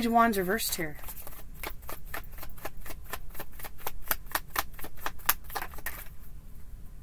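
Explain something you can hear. Cards are shuffled with a quick run of soft flicks.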